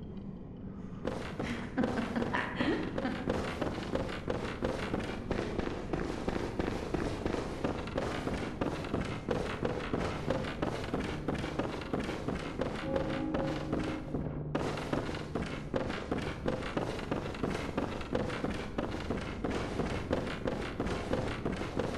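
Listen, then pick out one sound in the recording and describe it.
Quick footsteps run across a wooden floor.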